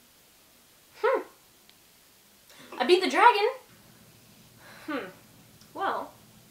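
A young woman speaks briefly and casually, close by.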